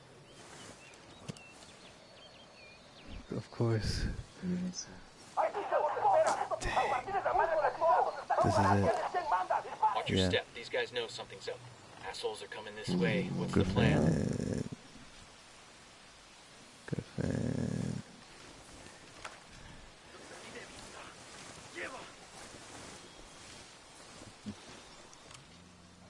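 Leaves and grass rustle as someone crawls through dense brush.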